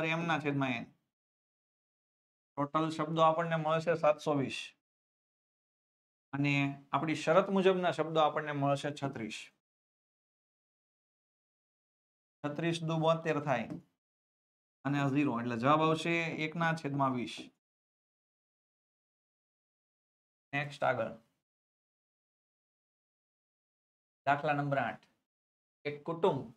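A young man explains calmly, close to a microphone, in short bursts with pauses.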